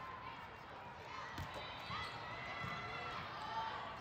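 A volleyball is served with a sharp smack.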